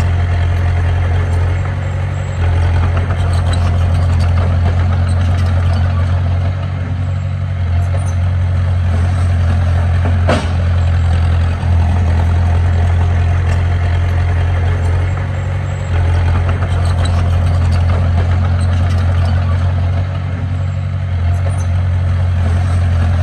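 A small bulldozer's diesel engine rumbles steadily close by.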